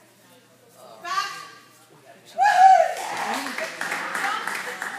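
A woman calls out with animation to a dog in a large echoing hall.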